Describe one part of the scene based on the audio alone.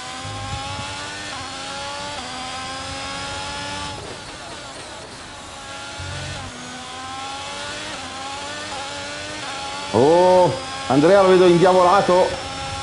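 A racing car engine revs high and shifts gears over and over.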